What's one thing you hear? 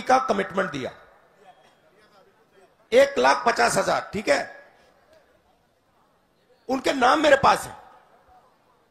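A man speaks loudly into a microphone outdoors, with pauses between phrases.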